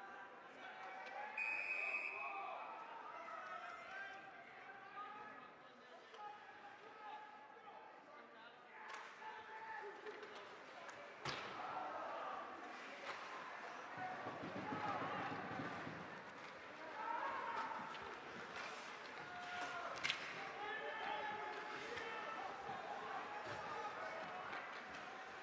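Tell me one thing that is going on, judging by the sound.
A crowd of people in an echoing rink talks and calls out.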